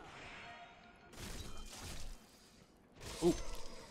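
Swords clash and strike in quick blows.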